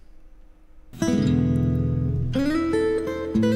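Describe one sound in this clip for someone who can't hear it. An acoustic guitar plays fingerpicked notes.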